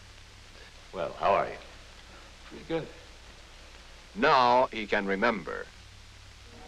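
A man speaks close by in short, lively bursts.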